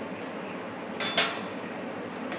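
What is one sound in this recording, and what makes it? Metal tongs clatter against a pot.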